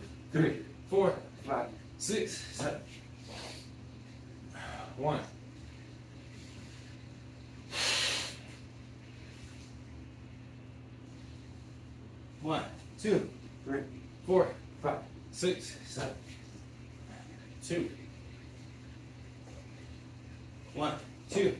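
A man breathes hard and grunts with effort.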